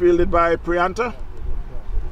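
A man calls out loudly from across the field.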